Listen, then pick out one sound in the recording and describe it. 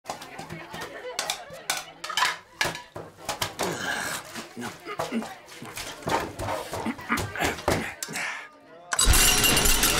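Plates clatter and scrape in a metal sink.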